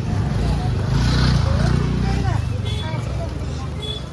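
A motor scooter putters past.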